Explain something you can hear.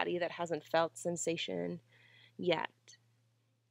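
A young woman speaks calmly and clearly, as if guiding an exercise, close to a microphone.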